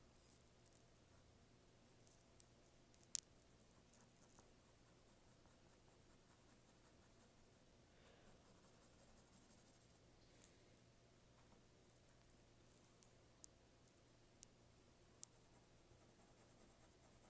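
A pencil scratches and taps softly on paper.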